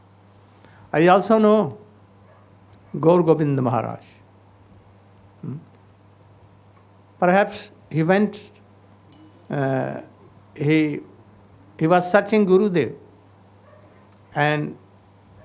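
An elderly man speaks slowly and with feeling into a microphone, in short phrases with pauses.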